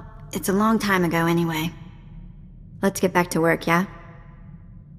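A young woman speaks calmly and clearly, close up.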